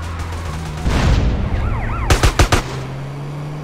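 A vehicle lands with heavy thuds after a jump.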